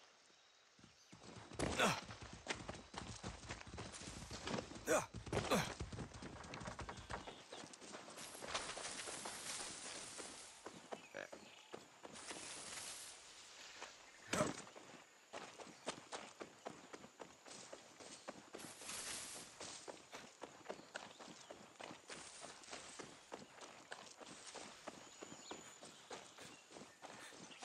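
Footsteps crunch quickly through grass and brush.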